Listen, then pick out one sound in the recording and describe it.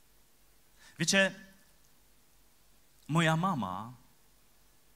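A man speaks through a microphone in a large hall, in short drawn-out phrases.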